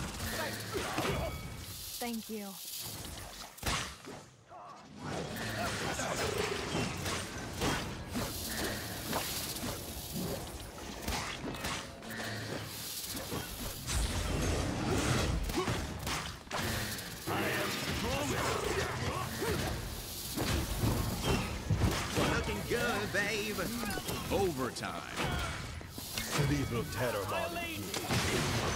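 Game gunfire and ability effects crackle and boom.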